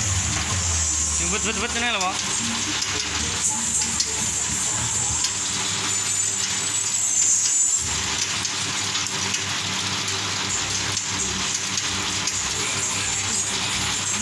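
Sticks clatter as they are fed into a machine.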